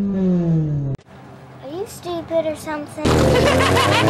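A young girl speaks softly.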